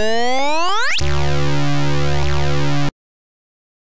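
A buzzy electronic jingle plays.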